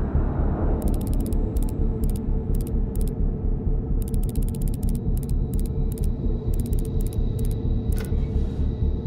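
A combination dial clicks rapidly as it turns.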